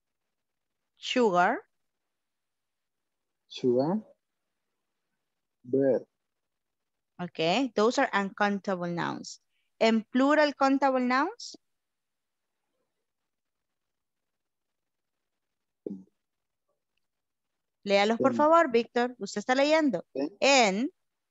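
A woman speaks calmly and clearly over an online call, with pauses.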